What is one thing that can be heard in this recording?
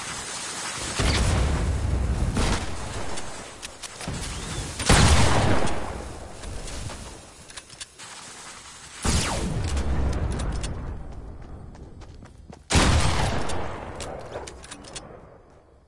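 Loud gunfire and blasts boom in bursts from a video game.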